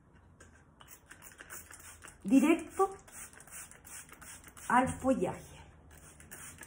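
A spray bottle hisses as it mists.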